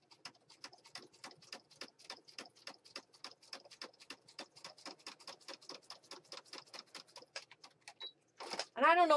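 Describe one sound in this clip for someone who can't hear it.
A sewing machine stitches with a fast, even ticking.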